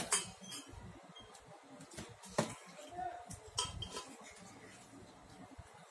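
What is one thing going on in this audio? A toddler's fingers splash and tap water in a small metal bowl.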